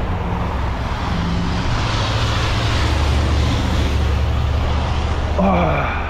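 A car drives past on a wet, slushy road.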